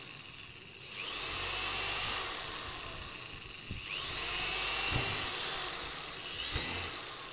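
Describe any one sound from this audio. A drill bit grinds through thin plastic.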